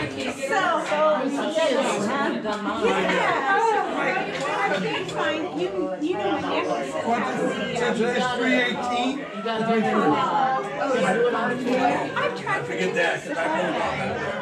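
An elderly woman talks animatedly nearby.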